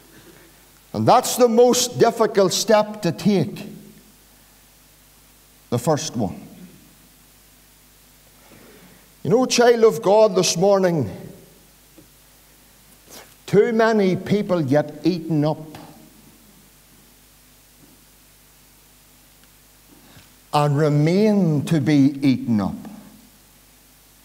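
A middle-aged man preaches with animation through a microphone in an echoing room, in bursts with long pauses.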